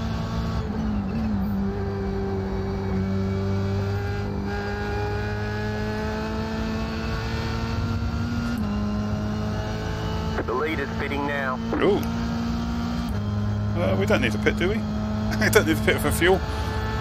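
A racing car engine drones steadily, rising in pitch and dropping with each gear change.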